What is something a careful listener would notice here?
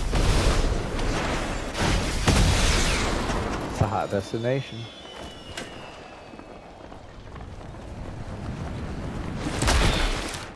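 Wind rushes loudly past during a fast glide through the air.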